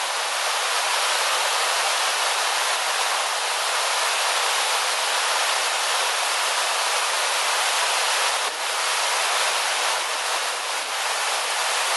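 A mountain stream rushes and splashes steadily over rocks close by.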